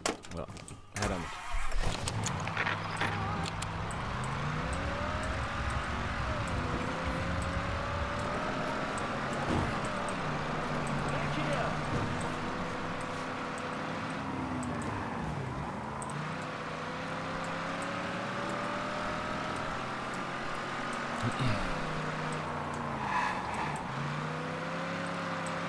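A car engine starts, then revs up and drops as gears shift.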